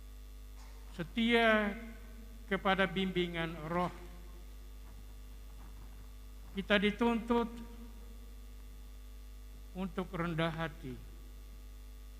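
An elderly man chants slowly through a microphone, in short phrases with long pauses.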